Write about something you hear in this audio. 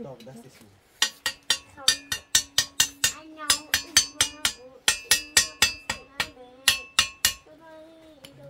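A stringed instrument is strummed in a quick rhythm.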